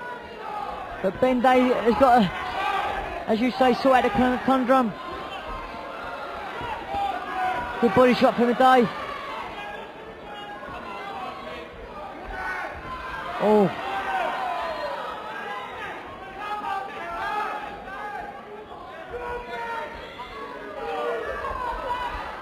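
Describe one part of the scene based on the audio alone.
A crowd shouts and cheers in a large hall.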